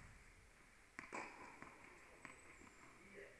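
A tennis ball bounces on a hard court in a large echoing hall.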